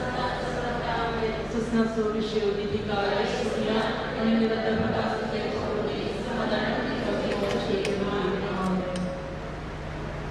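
A group of women and men sing slowly together.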